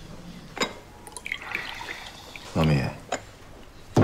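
Tea pours from a teapot into a bowl.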